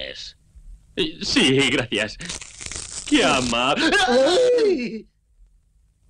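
A man talks cheerfully with animation.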